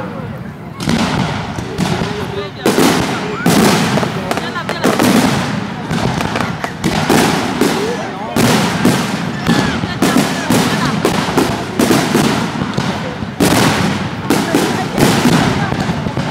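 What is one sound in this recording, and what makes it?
Fireworks crackle and pop in quick bursts.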